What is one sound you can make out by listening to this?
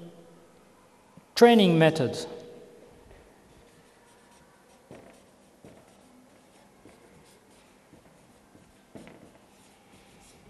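A marker squeaks on paper as it writes.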